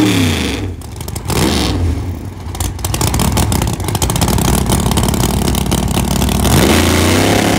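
Tyres screech as a car does a burnout.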